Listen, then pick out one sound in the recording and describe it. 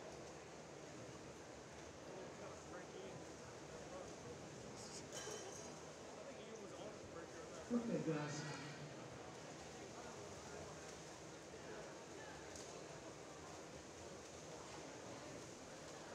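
Swimmers splash through the water in a large echoing pool hall.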